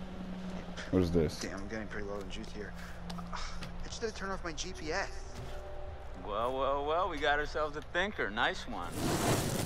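A young man speaks with effort, straining and grunting.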